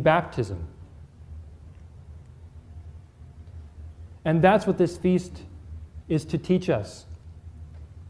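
A man speaks calmly and clearly into a microphone, pausing between phrases.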